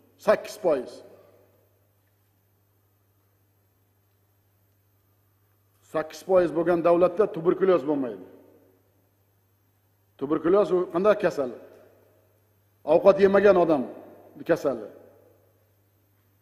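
A middle-aged man speaks forcefully through a microphone, with long pauses between phrases.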